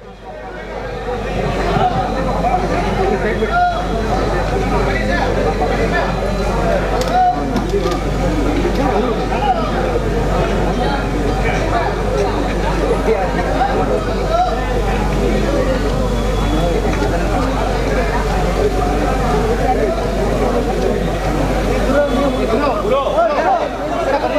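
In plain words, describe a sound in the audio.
A crowd of men chatter loudly all around, close by.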